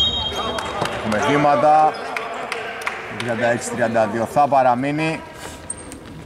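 A man shouts across the court in a large echoing arena.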